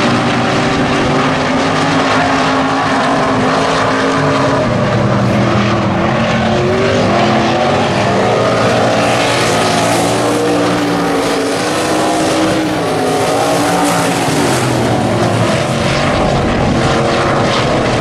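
Race car engines roar loudly and rev as the cars speed around a dirt track.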